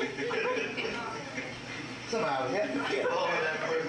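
A congregation laughs.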